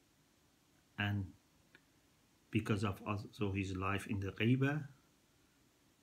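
A middle-aged man speaks calmly and close up, with pauses.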